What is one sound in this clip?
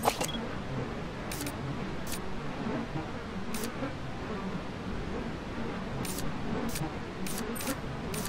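A rifle scope clicks as it zooms.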